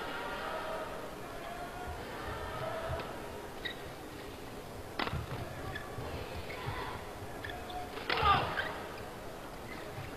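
Rackets strike a shuttlecock back and forth in a quick rally.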